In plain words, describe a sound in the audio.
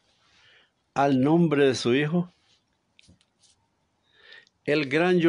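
An older man sings slowly and softly, close to the microphone.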